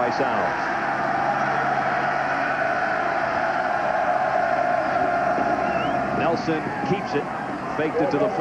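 A large crowd cheers and roars steadily in an open stadium.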